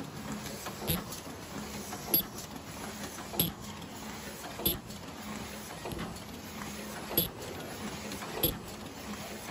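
Machine parts clack sharply at a regular beat.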